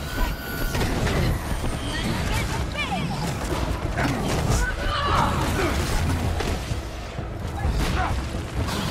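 Punches and blows thud in a fast brawl.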